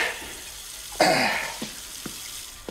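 A young man gasps and groans in pain close by.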